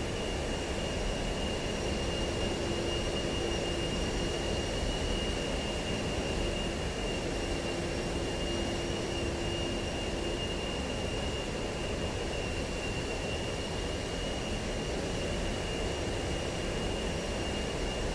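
A jet engine drones steadily with a thin high whine.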